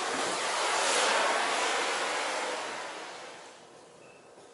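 A gas lighter hisses loudly as a burner is lit, then dies away.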